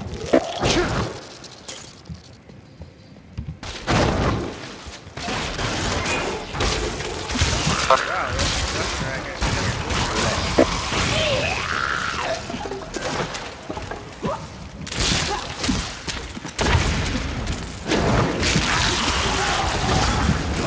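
Weapons clash and hit monsters in fast combat.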